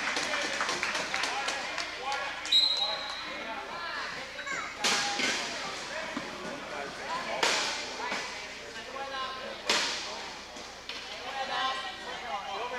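Young men shout and call out to each other across an echoing hall.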